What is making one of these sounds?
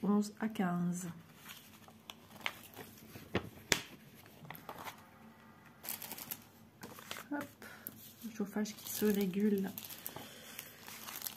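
Paper sheets rustle and crinkle as they are handled.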